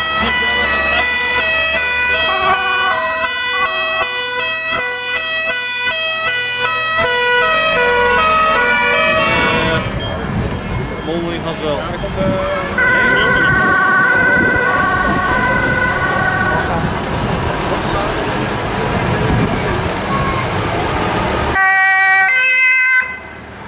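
A heavy fire engine's engine rumbles as it drives past.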